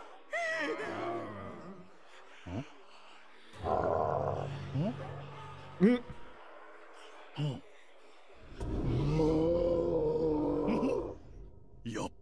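A zombie groans and growls loudly.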